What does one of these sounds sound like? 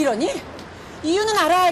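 A second woman answers in an excited voice, close by.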